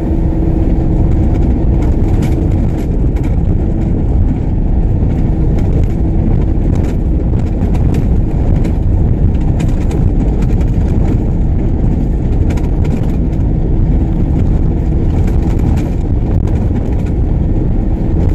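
A car engine rumbles steadily inside the car as it drives.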